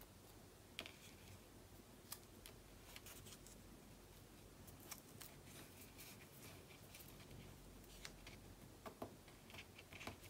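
Paper taps and clicks softly on a hard surface.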